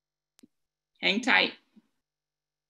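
A young woman speaks briefly and calmly over an online call.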